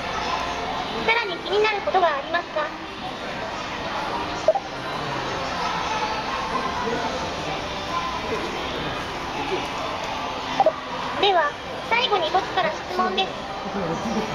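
A robot speaks in a high, childlike synthetic voice close by.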